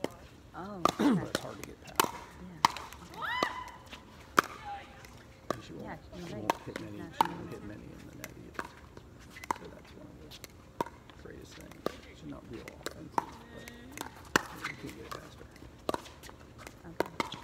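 Paddles smack a plastic ball back and forth in a quick rally.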